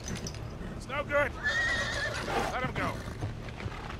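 An older man shouts over the wind.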